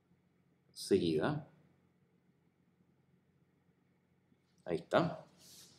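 A man speaks calmly and closely into a microphone in short phrases.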